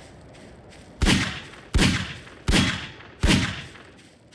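Pistol shots ring out in quick succession.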